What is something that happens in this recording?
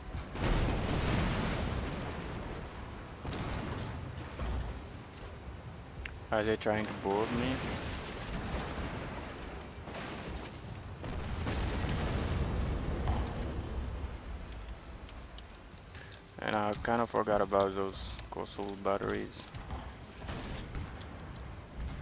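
Cannons fire with deep, rumbling booms.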